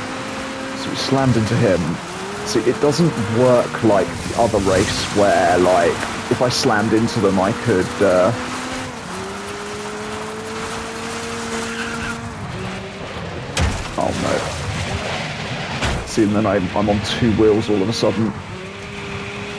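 Tyres skid and scrabble on loose dirt.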